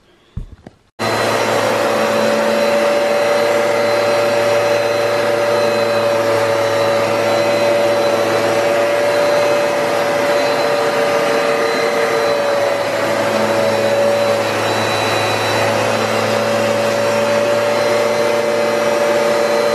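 A vacuum cleaner starts up and runs with a steady loud whine.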